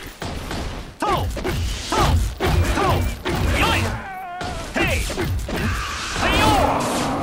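Blades clash and strike repeatedly in a fight.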